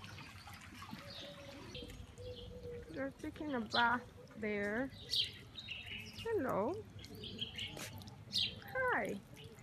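Water trickles gently from a small fountain.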